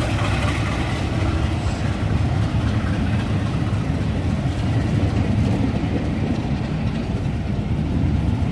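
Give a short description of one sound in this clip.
Train carriages rumble steadily past on the rails.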